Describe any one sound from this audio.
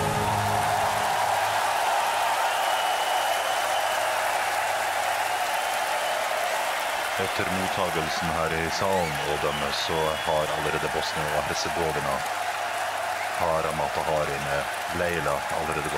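A large crowd cheers and applauds in a big echoing arena.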